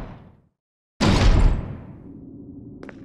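A heavy metal door slams shut and booms.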